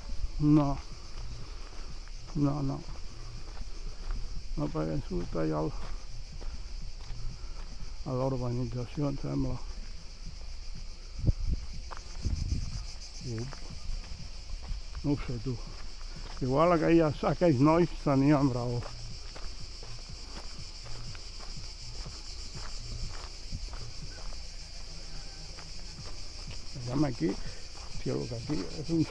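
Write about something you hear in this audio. Footsteps crunch on a dirt and gravel path.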